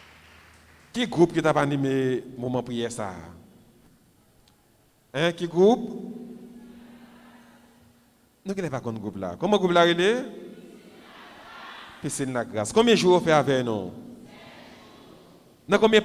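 A man sings into a microphone, heard through loudspeakers in an echoing room.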